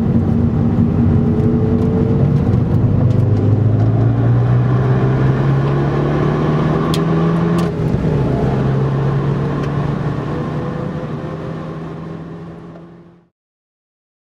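A car engine hums steadily from inside the cabin, with the pitch rising and falling through gear changes.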